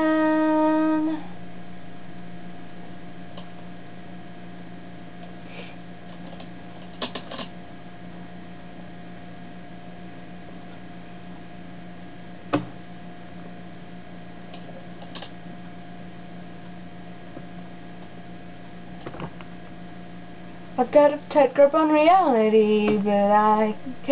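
A young woman sings close to a microphone.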